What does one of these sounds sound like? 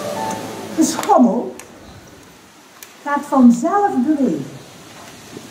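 A middle-aged woman reads aloud calmly outdoors.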